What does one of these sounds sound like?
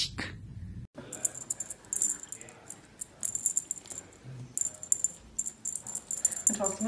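A kitten rustles a toy on carpet while playing.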